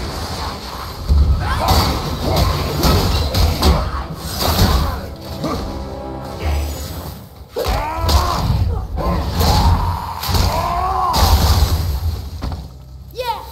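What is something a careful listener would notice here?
Heavy blows thud and clash in a fight.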